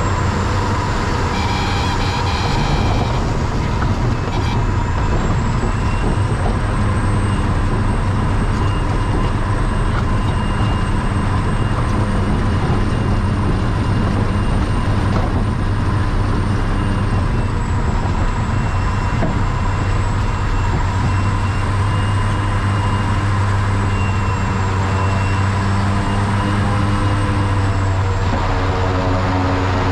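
Wheels rumble over a bumpy grass strip.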